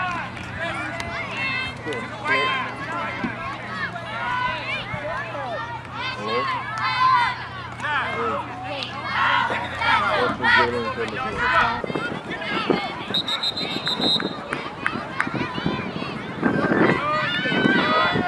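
Young players shout and call out outdoors.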